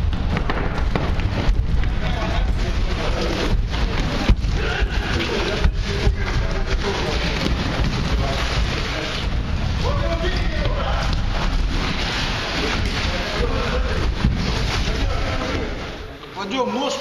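Feet scuffle and thump on a hard floor.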